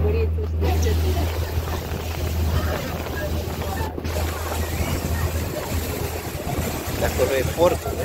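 Water splashes and rushes along a boat's hull.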